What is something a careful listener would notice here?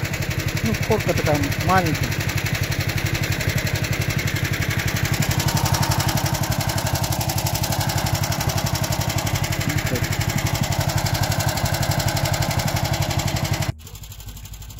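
A snowmobile engine runs close by with a steady, rattling drone.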